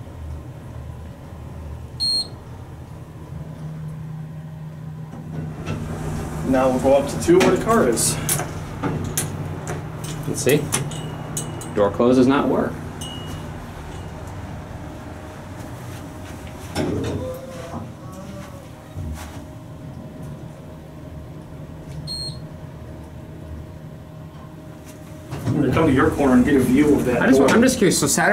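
An elevator hums steadily.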